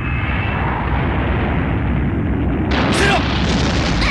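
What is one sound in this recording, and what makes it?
A loud blast roars and rumbles.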